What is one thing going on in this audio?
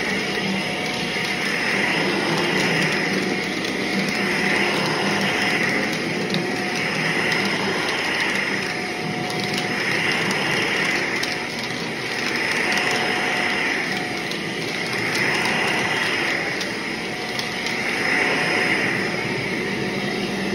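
A vacuum cleaner whirs steadily, its pitch swelling and falling as it is pushed back and forth over carpet.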